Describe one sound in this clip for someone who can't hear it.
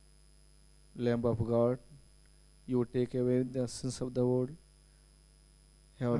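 A man chants a prayer in a sung, steady voice through a microphone.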